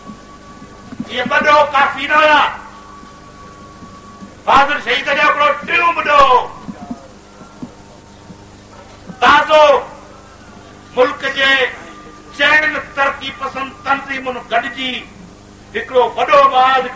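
A man speaks forcefully into a microphone, heard through loudspeakers outdoors.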